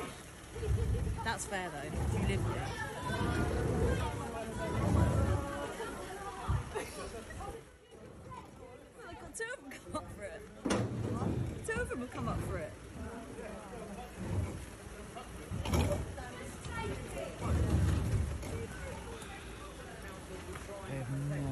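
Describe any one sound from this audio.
A crowd of people talk and shout outdoors.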